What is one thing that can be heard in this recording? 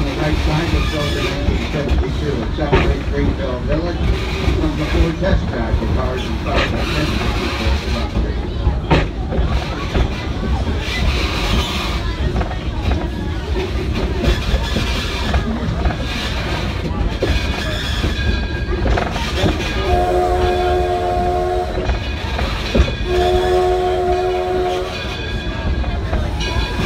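A small steam locomotive chugs and rumbles steadily along its track.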